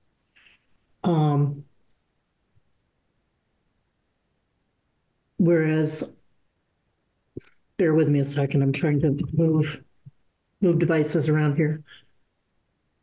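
A middle-aged woman speaks calmly in short bursts over an online call.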